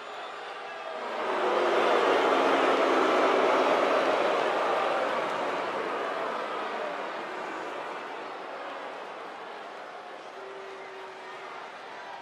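A large crowd cheers and roars in a big echoing arena, swelling and then slowly fading.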